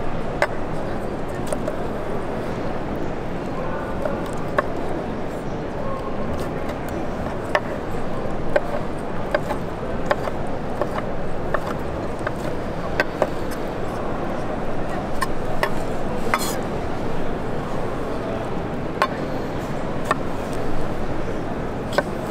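A knife taps sharply and irregularly on a wooden board.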